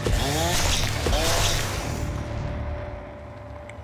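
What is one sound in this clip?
A man shouts with excitement.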